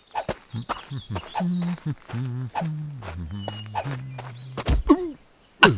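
A cartoonish man's voice babbles with animation.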